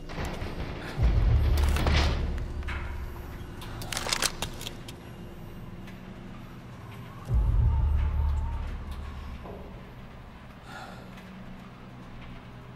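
A heavy lift rumbles deeply as it moves.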